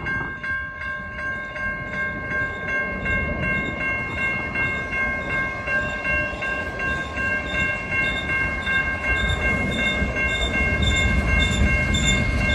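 A freight train rumbles past.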